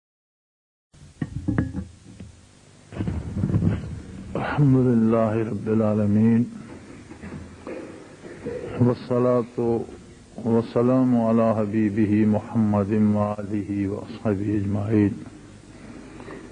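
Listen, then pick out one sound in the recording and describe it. An elderly man speaks calmly and at length into a microphone.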